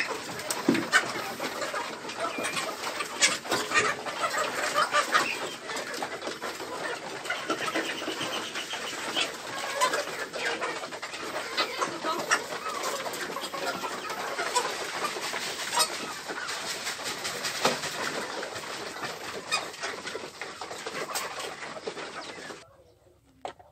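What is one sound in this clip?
Many chickens cluck and squawk noisily close by.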